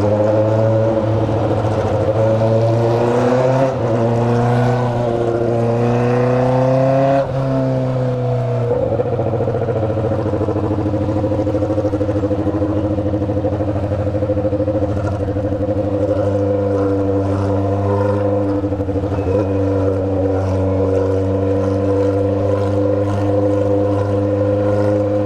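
A motorcycle engine revs and rumbles up close.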